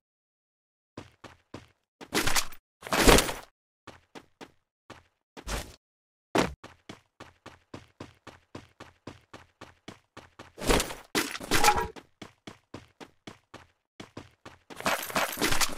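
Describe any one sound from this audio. Quick footsteps patter in a steady rhythm.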